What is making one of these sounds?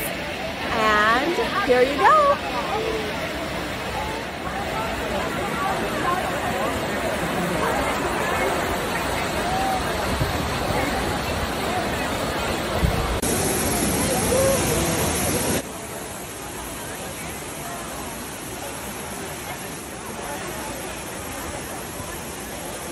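A fountain's water splashes and rushes steadily.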